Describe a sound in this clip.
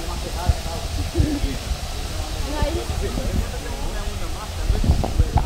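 A young woman speaks casually nearby.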